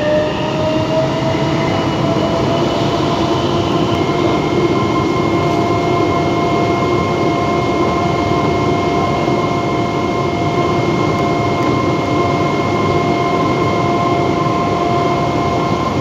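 A subway train rumbles loudly through a tunnel.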